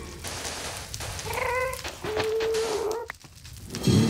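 A shovel digs into sand with soft crunches.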